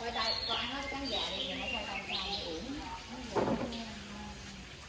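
Young children chatter nearby.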